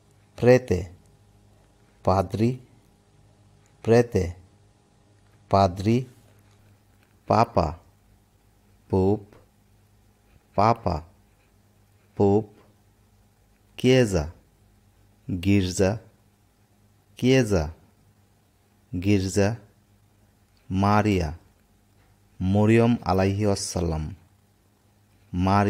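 A woman says single words slowly and clearly into a microphone, with short pauses between them.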